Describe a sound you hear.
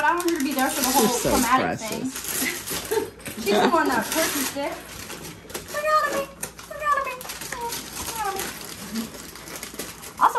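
Tissue paper rustles as a gift is pulled from a bag.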